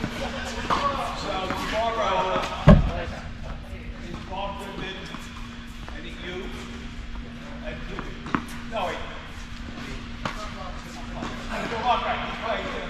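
Tennis balls pop off rackets in a large echoing indoor hall.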